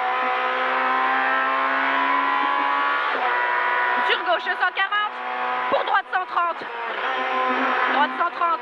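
A rally car engine roars at high revs inside the cabin.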